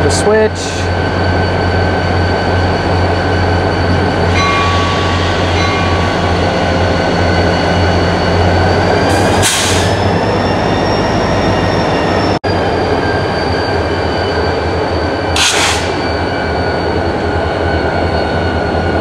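A diesel locomotive engine idles nearby with a steady low rumble.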